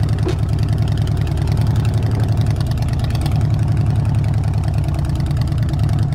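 A motorcycle engine idles with a deep, steady rumble close by.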